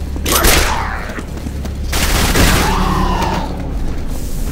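A rifle fires in loud, sharp bursts.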